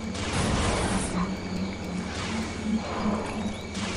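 A blaster fires bolts in quick bursts.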